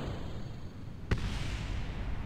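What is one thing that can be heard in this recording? A sharp bang sounds as a rocket stage separates.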